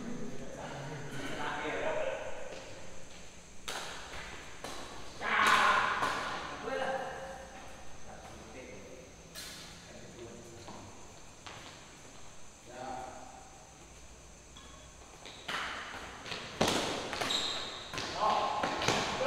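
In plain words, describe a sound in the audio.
Badminton rackets hit a shuttlecock in an echoing indoor hall.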